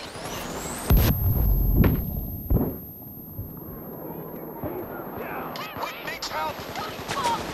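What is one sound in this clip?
A high ringing tone hangs on after a blast.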